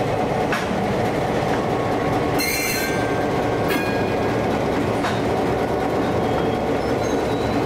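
Steel wheels clank and squeal on the rails.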